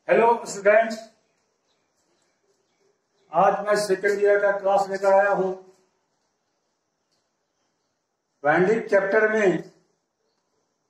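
A middle-aged man speaks calmly in short bursts with pauses, close by.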